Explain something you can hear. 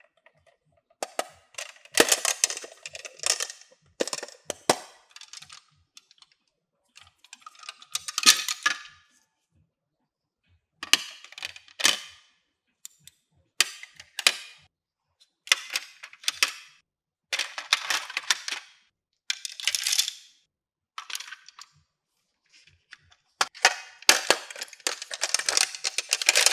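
Plastic toy pieces clatter and click as they are handled.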